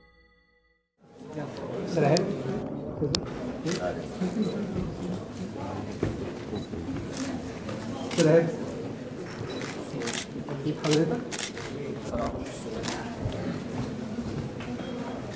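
A crowd of men and women chatters in a busy room.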